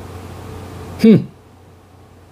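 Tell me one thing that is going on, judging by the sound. A man makes a short sound with his voice, close to a microphone.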